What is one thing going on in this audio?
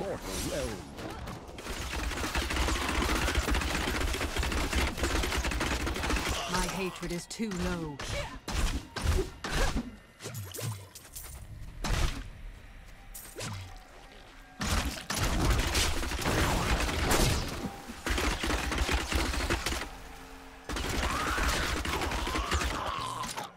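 Magic blasts crackle and boom in a game.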